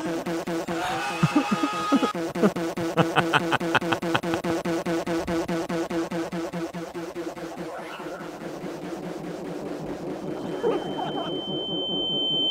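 Another young man laughs heartily close to a microphone.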